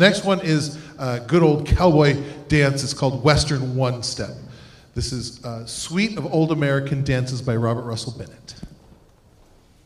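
A man speaks with animation into a microphone through loudspeakers in a large hall.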